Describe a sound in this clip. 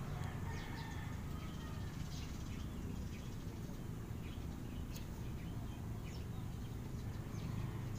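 A brush strokes softly on paper.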